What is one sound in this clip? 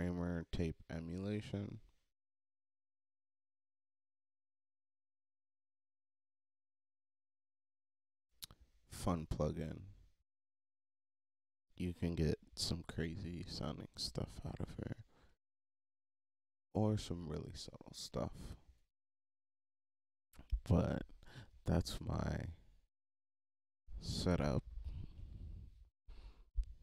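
A young man talks calmly into a close microphone, in bursts with pauses.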